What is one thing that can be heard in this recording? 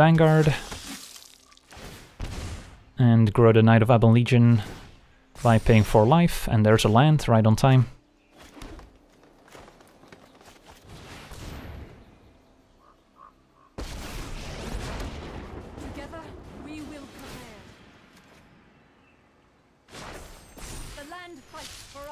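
A card lands with a soft thud.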